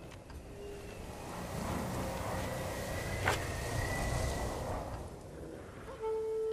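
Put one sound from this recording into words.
Wind gusts strongly outdoors.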